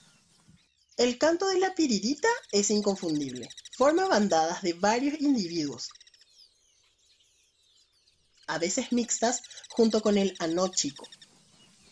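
A flock of birds calls loudly with harsh, rattling chatter.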